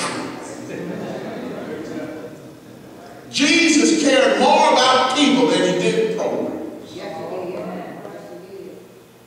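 An elderly man speaks with feeling through a microphone in an echoing hall.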